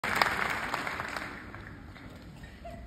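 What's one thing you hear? An audience applauds in a large hall and fades.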